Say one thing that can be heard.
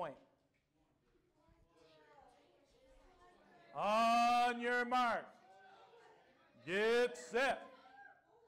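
Children murmur and chatter quietly in an audience.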